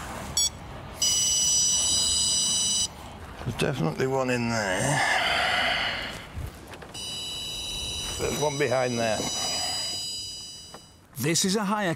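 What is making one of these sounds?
A car's warning chime sounds steadily.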